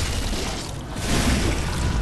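A blade slashes into flesh.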